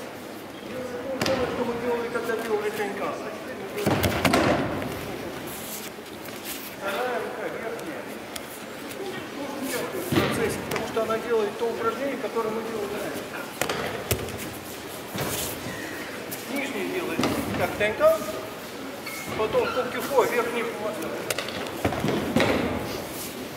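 An elderly man talks calmly, explaining, in a large echoing hall.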